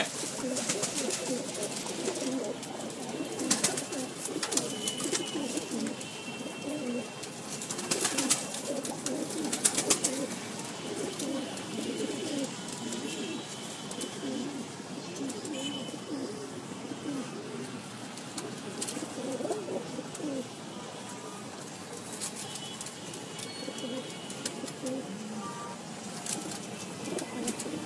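Pigeons coo in low, rolling calls close by.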